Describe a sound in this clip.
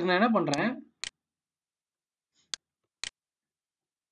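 A computer mouse clicks a few times.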